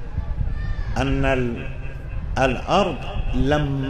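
An elderly man speaks with feeling through a microphone in an echoing hall.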